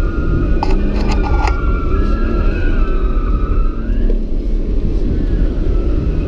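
A car engine roars loudly from inside the cabin.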